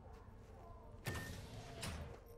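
A door slides open.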